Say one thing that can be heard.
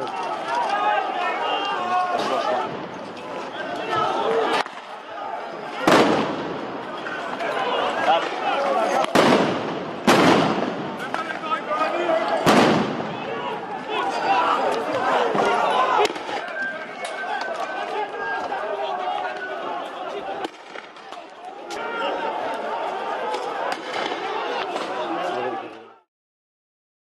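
A crowd shouts and yells outdoors.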